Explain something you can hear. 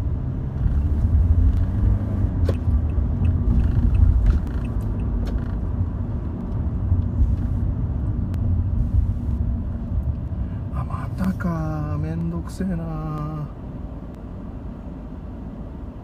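Traffic rumbles nearby.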